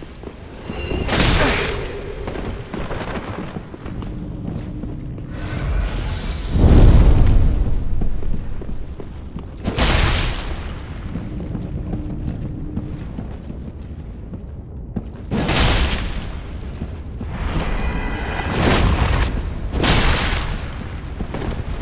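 Swords swing through the air with loud whooshes.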